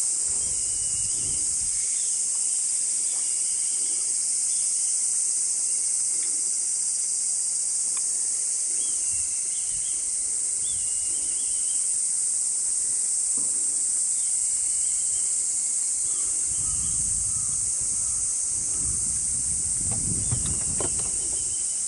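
A paddle dips and splashes softly in calm water.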